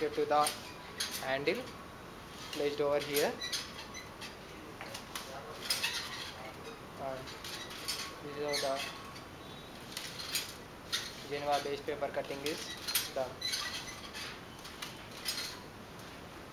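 A metal chain rattles and clicks over sprockets as a hand crank is turned.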